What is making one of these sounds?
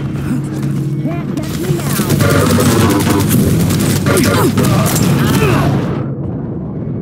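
An energy gun crackles and zaps rapidly.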